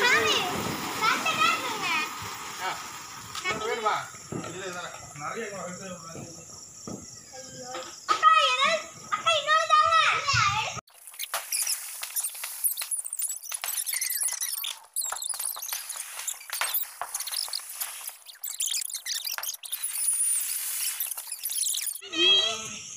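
Ground fireworks hiss and crackle loudly.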